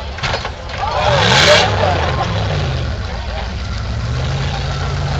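Tyres spin and spray loose dirt.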